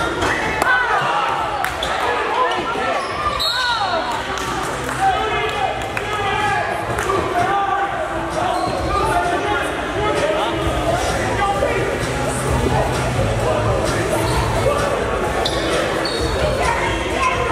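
Spectators chatter and call out around the court.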